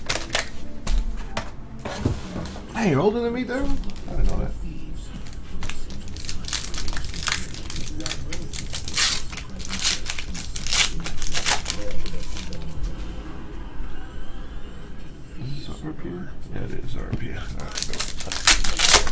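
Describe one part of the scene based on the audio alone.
Plastic wrappers crinkle and rustle in hands.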